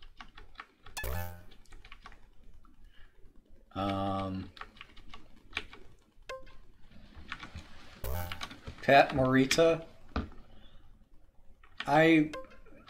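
Retro video game bleeps and buzzes sound in short bursts.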